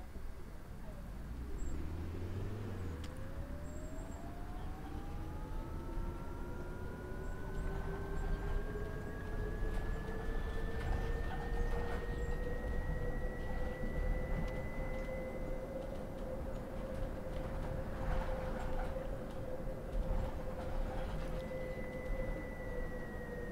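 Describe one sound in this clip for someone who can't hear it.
A bus engine whines and rises steadily in pitch as the bus speeds up.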